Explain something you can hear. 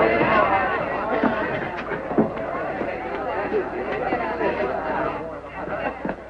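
Men shout in a scuffle, heard through an old film soundtrack.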